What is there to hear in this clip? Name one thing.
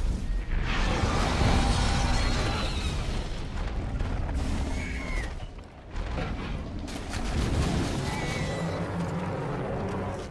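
A monster roars and rumbles loudly.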